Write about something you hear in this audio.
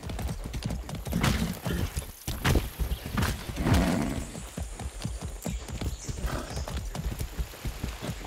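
Leaves and branches rustle and swish against a rider.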